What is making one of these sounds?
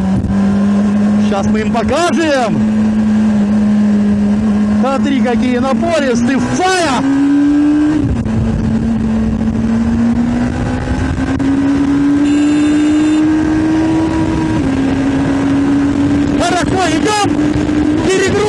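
A motorcycle engine hums steadily, its pitch slowly rising and falling.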